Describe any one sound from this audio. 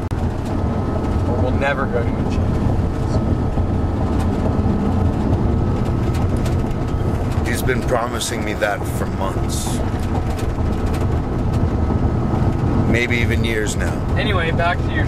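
A vehicle engine hums and road noise rumbles steadily inside a moving car.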